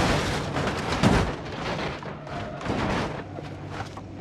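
Cars crash into each other with loud metallic crunches.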